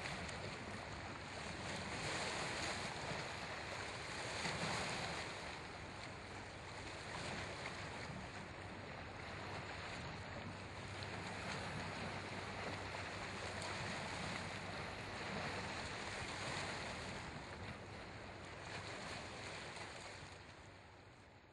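Water splashes against rocks.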